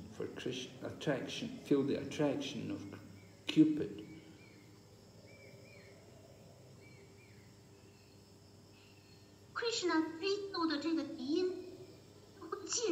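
An elderly man speaks close by, in short bursts.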